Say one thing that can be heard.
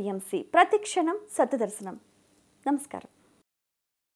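A woman speaks calmly and clearly into a microphone.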